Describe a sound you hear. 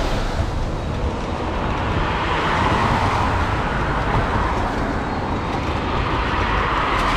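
Cars swish past on a wet road.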